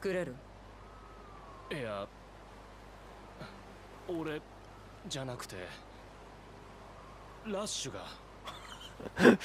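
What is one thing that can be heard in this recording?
A young man speaks hesitantly, close by, in short broken phrases.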